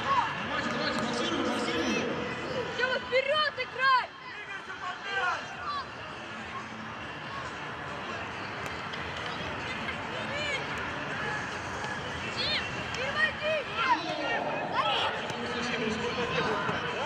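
Children shout and call out across an open outdoor pitch.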